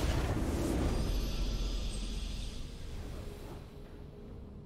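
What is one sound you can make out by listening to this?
A bright triumphant fanfare swells and fades away.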